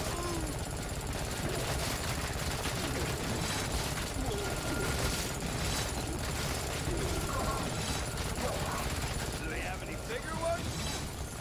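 Weapons clash and thud in a game fight.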